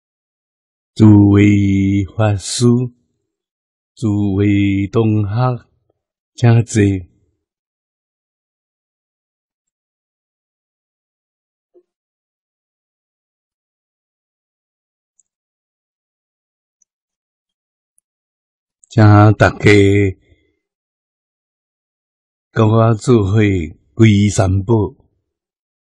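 An elderly man speaks slowly and calmly into a close microphone, in short phrases with long pauses.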